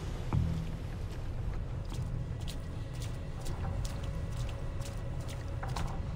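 Footsteps crunch and splash on wet stone ground.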